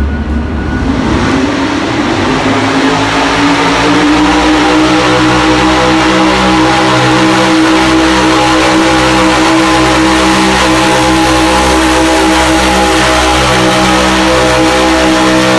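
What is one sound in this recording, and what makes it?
A truck engine revs up and roars loudly and steadily.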